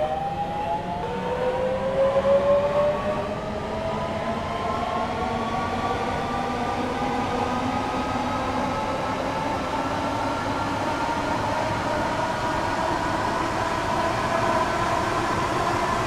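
An electric train motor whines, rising steadily in pitch as the train speeds up.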